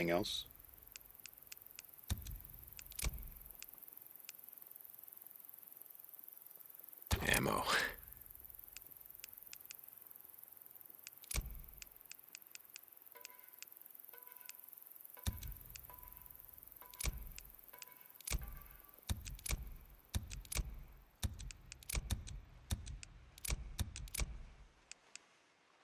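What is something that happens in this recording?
Short soft clicks sound again and again as menu items are selected.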